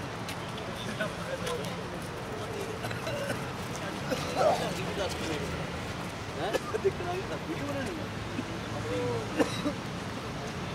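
A young man talks casually nearby while passing.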